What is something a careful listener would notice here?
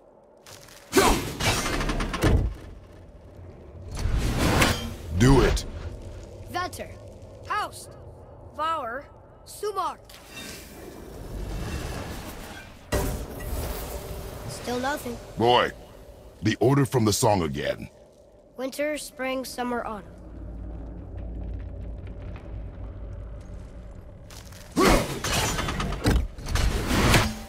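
An axe whooshes through the air and strikes with a heavy thud.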